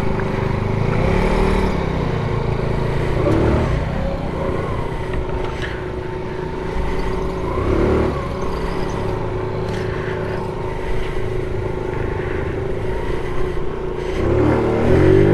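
A scooter engine hums steadily at low speed.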